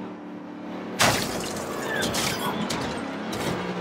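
A car scrapes and bumps against another car.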